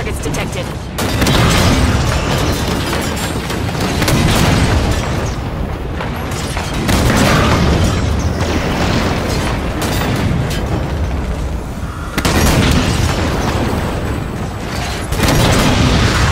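Explosions blast nearby.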